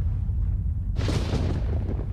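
A small creature lunges and strikes with a sharp hit.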